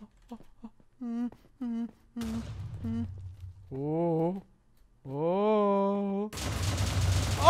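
A young man talks excitedly into a microphone, close by.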